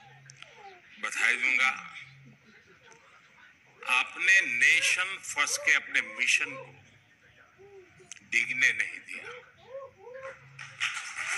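An elderly man speaks with emphasis through a microphone, heard over loudspeakers.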